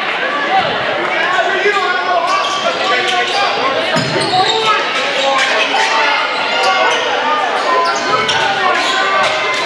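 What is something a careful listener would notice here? A crowd chatters and cheers in a large echoing gym.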